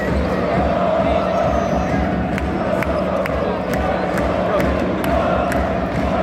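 A large crowd chants and cheers loudly in a big echoing arena.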